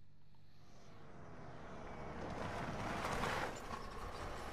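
A car drives up and stops.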